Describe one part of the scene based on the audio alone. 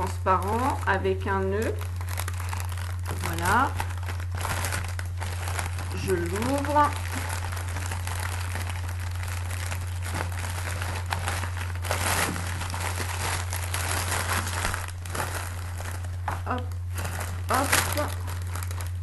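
A middle-aged woman speaks softly and close by, in short bursts.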